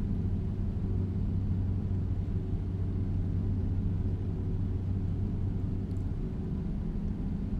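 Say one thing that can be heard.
A truck engine drones low and steady.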